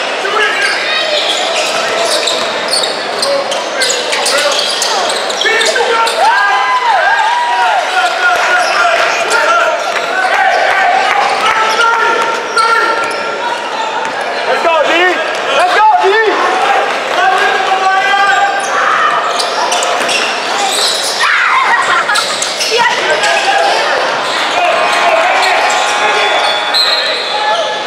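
A crowd of spectators murmurs and calls out in an echoing hall.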